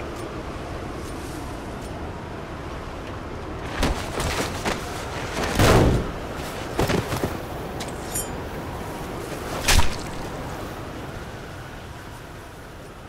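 Strong wind roars steadily in a sandstorm.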